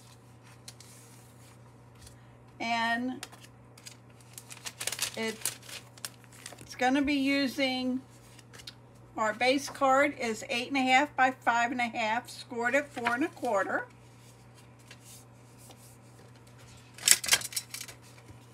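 Sheets of card rustle and slide against each other.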